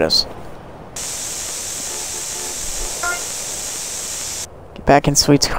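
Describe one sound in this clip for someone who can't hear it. A spray can hisses steadily.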